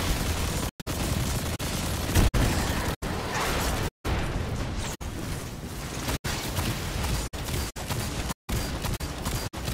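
Rapid gunfire blasts close by.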